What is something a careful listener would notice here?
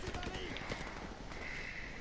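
Flames crackle nearby.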